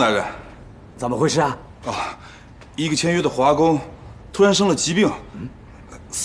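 A middle-aged man explains with urgency.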